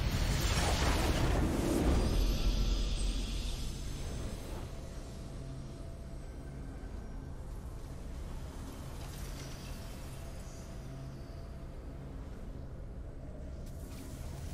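A triumphant game fanfare swells and slowly fades.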